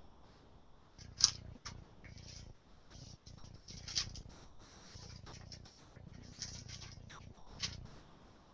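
Papers rustle and shuffle as they are handled.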